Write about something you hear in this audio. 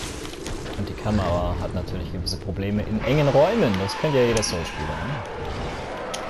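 A monster shrieks with wavering, rising and falling cries.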